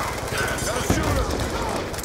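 Rapid gunshots fire from a rifle.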